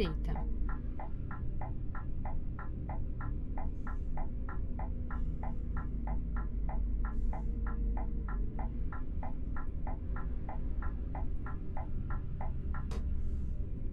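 A turn signal ticks rapidly and evenly, then stops.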